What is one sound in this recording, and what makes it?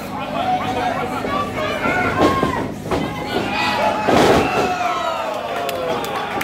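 A crowd of spectators shouts and cheers indoors.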